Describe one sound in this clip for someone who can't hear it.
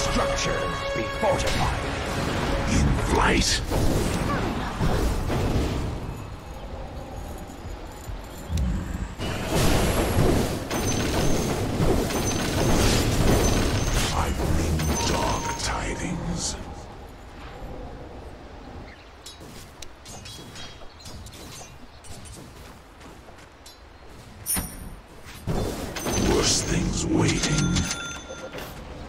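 Game spells crackle and weapons clash in a fast skirmish.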